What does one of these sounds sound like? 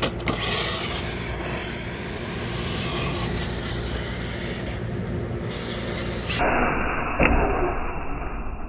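A toy truck's electric motor whirs as it drives over concrete.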